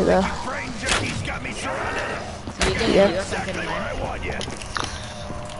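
A young boy talks with animation into a microphone.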